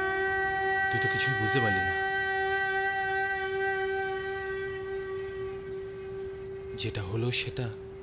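A man speaks sharply, close by.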